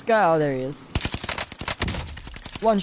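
Gunshots crack from a video game.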